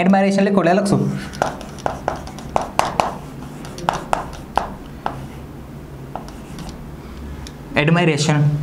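A marker taps and squeaks on a board.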